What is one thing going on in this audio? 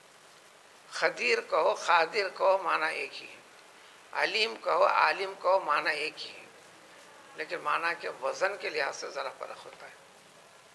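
An elderly man speaks calmly, in a lecturing way, close by, with pauses between phrases.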